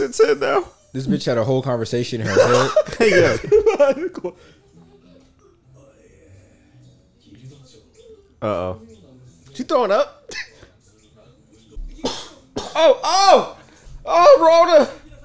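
Young men laugh close to microphones.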